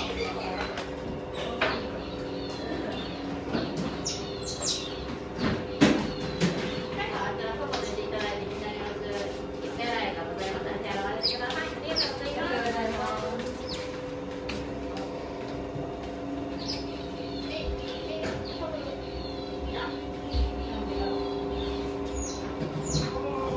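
Water splashes and sloshes as an otter rolls and swims in a shallow tub.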